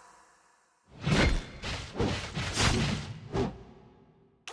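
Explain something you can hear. Spells and hits crash and clash in bursts.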